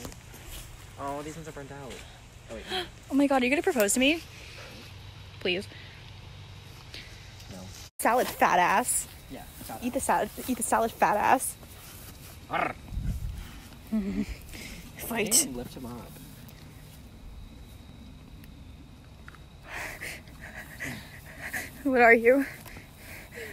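A young man talks and laughs close by, outdoors.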